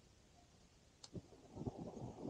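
A camping gas stove ignites with a sharp click.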